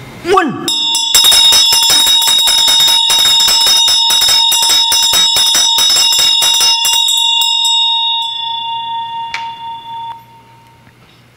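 A hand bell rings rapidly and continuously, then fades out.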